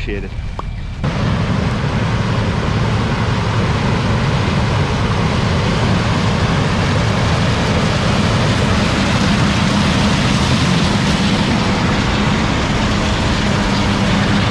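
A combine harvester roars as it harvests corn close by.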